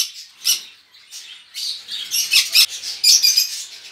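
A wire cage door latch rattles.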